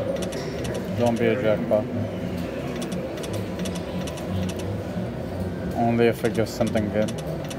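Reels on a slot machine stop with short chimes.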